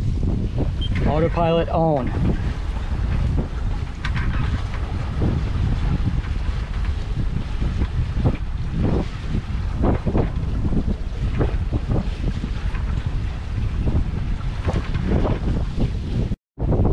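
Wind blusters steadily across a microphone outdoors.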